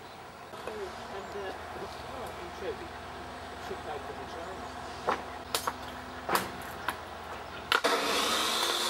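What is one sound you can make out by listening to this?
A man splits kindling with sharp wooden knocks.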